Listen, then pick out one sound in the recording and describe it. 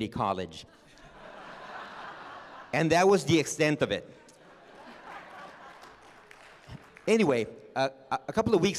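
People nearby laugh.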